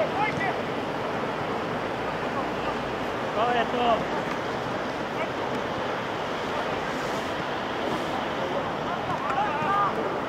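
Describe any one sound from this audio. Young men shout to each other in the distance outdoors.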